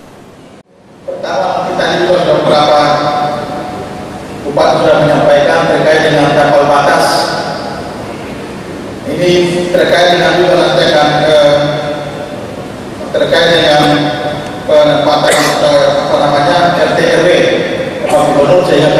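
A man speaks loudly through a microphone in a large echoing hall.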